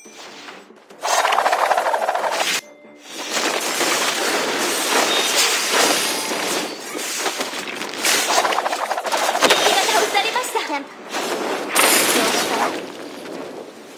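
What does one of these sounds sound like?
Magic blasts and weapon strikes crash and whoosh in a video game battle.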